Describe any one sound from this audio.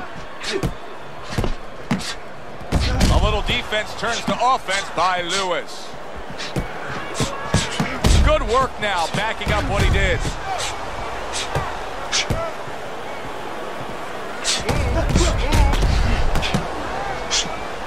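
A crowd cheers and murmurs steadily.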